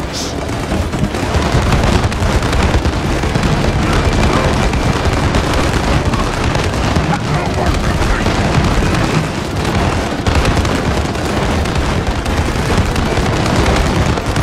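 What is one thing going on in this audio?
Small explosions boom now and then.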